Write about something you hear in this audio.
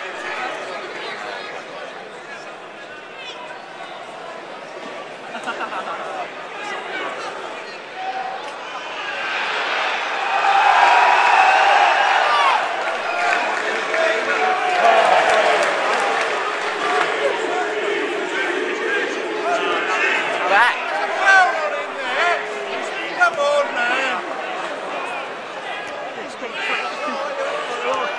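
A stadium crowd murmurs and chatters outdoors, then cheers loudly.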